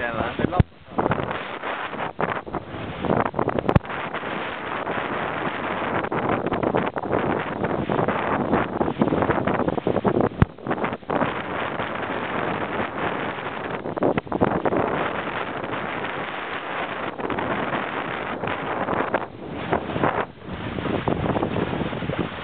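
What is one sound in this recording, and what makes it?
Strong wind roars across the microphone outdoors.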